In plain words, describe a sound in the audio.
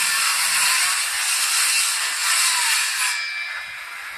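A power saw whines loudly, then stops.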